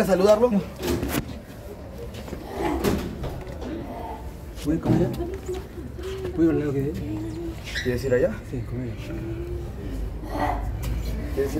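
Several young people talk and chatter close by.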